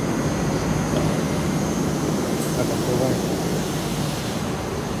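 A metro train rumbles along the tracks, heard from inside the carriage.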